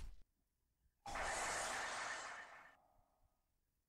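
A game plays a rushing, hissing sound effect as a card is played.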